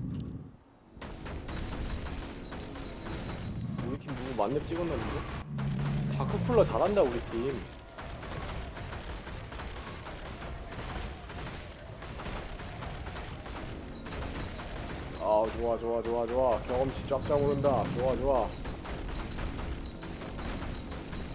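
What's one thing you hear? Game spell effects blast and crackle over and over.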